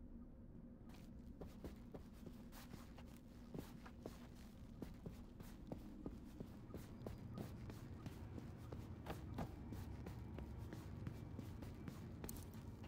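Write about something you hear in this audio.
Footsteps tap steadily on a hard floor indoors.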